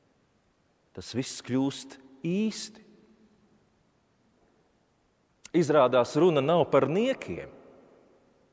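A man chants slowly into a microphone in a large echoing hall.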